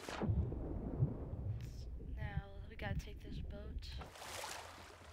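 Water gurgles and bubbles underwater.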